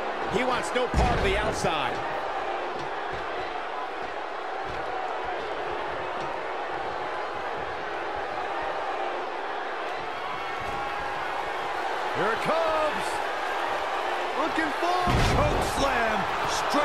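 A heavy body slams onto a wrestling ring mat with a loud thud.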